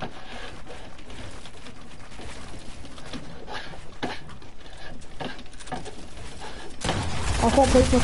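A pickaxe knocks against wooden walls.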